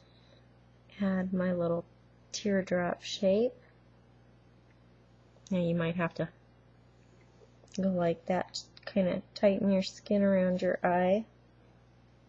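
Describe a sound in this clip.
A young woman talks calmly close to the microphone.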